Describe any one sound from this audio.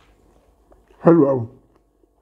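A man murmurs with his mouth full, close to a microphone.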